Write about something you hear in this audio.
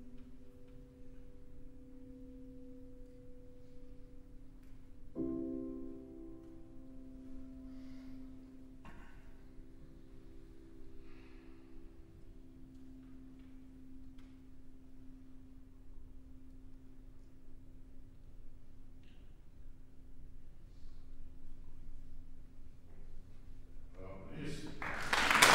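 A piano plays slow, soft notes that ring and fade.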